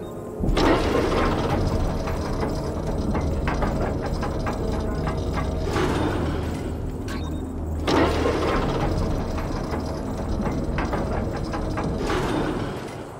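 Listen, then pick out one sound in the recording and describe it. A mechanical lift rumbles and clanks as it moves up and down.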